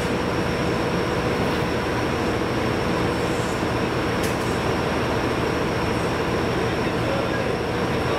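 Metal clanks as a worker handles a coupling under a train.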